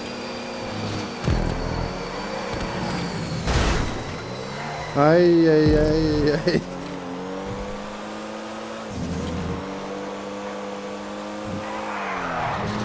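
A race car engine hums steadily and shifts pitch through gear changes.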